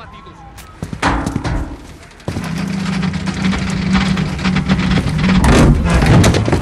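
Metal bars clank and rattle as they are pulled.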